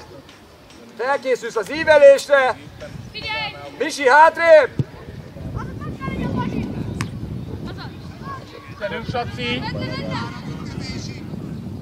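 Children shout loudly across an open field.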